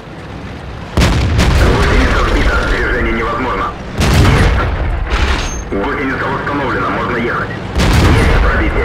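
Tank cannons fire with loud, booming blasts.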